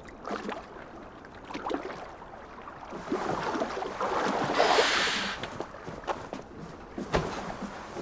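Footsteps creak and thud on wooden planks.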